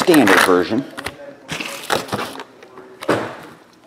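Foil card packs crinkle and rustle as they are handled.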